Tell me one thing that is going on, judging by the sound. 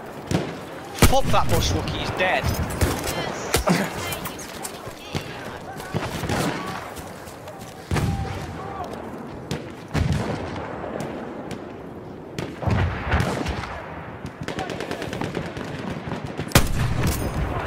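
A Martini-Henry rifle fires single shots.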